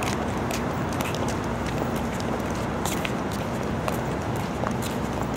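Traffic hums steadily.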